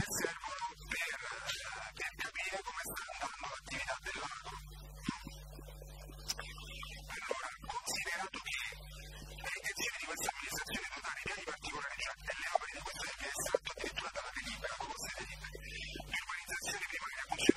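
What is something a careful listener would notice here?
An older man reads out from a paper, speaking calmly.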